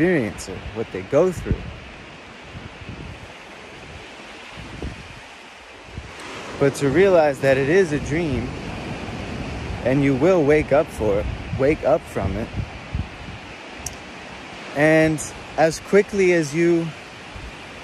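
A young man talks casually close by, with pauses.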